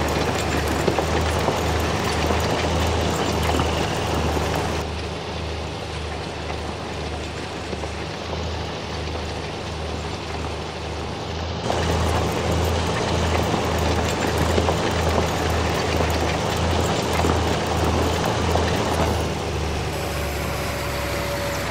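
A tractor engine chugs steadily.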